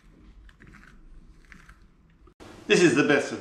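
A knife scrapes and cuts through soft vegetable.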